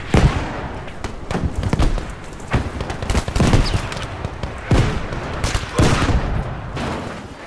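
Large fires roar and crackle.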